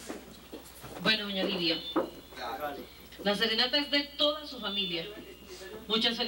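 An elderly woman speaks close by.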